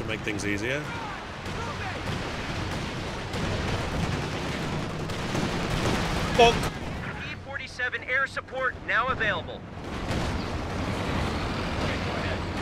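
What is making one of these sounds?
Gunfire and explosions rumble in a battle.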